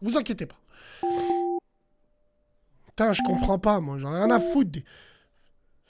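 A man speaks into a close microphone with animation.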